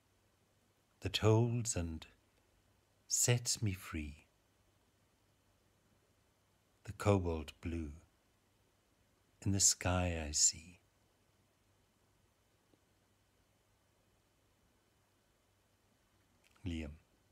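An older man speaks slowly and calmly, close to a phone microphone, with long pauses.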